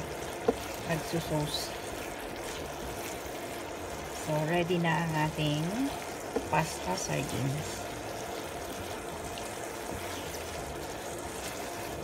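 Tongs scrape and clack against a pan.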